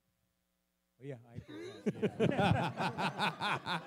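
A group of people laugh loudly.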